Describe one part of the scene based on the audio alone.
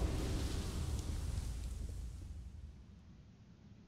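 A deep magical rumble slowly fades away.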